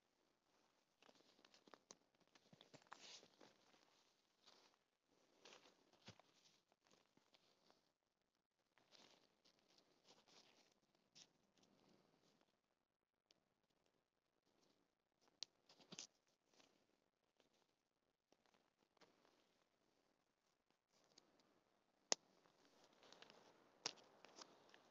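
Dry leaves crunch underfoot.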